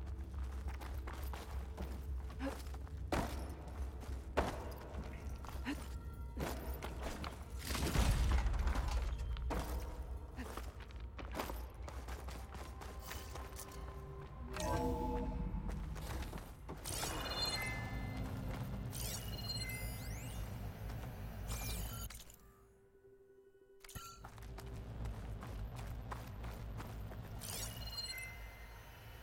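Footsteps crunch on a hard floor.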